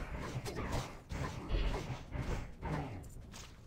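Blades strike and clash in a fight.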